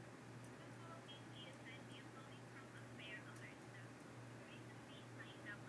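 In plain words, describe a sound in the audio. A young man talks quietly on a phone, close by.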